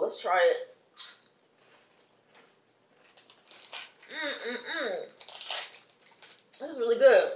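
A snack bag crinkles and rustles.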